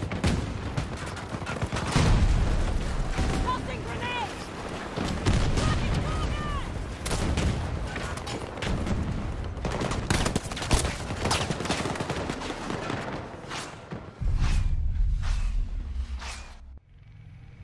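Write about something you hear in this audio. Gunshots crack rapidly from a rifle.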